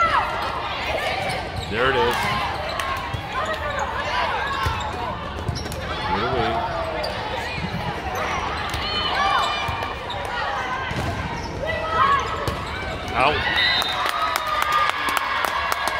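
Young women players shout and call out to each other in a large echoing hall.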